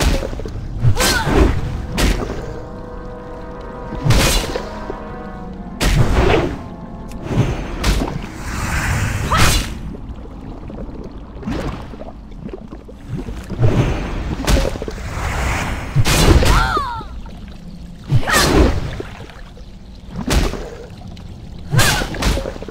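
Sword blows strike a creature again and again.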